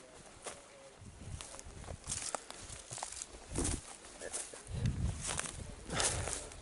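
Footsteps crunch over dry leaves and twigs.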